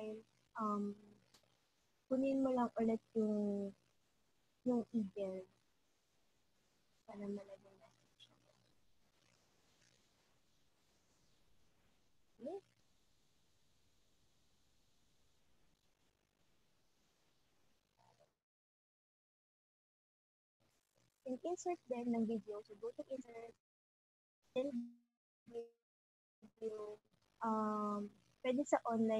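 A young woman speaks calmly through an online call, in short phrases.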